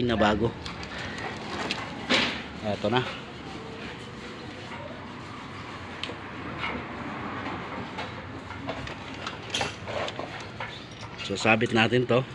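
A metal chain clinks and rattles as it is handled.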